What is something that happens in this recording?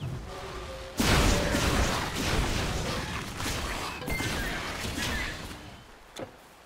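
A spell bursts with a loud, rushing roar.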